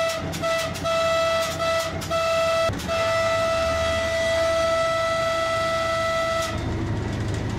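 A locomotive horn blares in a long steady tone.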